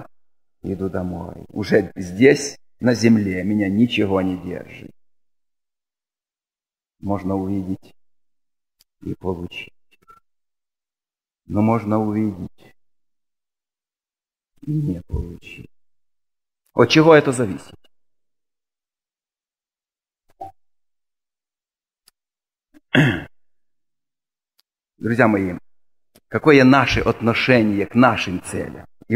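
A middle-aged man speaks calmly into a microphone, pausing often between phrases.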